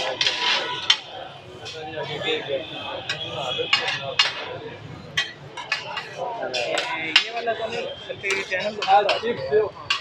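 Metal spatulas scrape and clink against a hot griddle.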